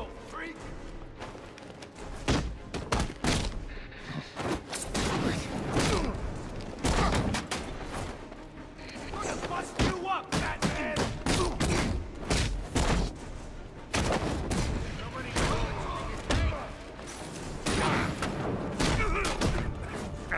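Punches and kicks land with heavy thuds, again and again.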